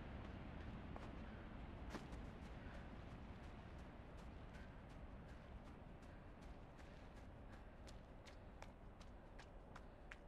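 Quick footsteps patter across soft ground.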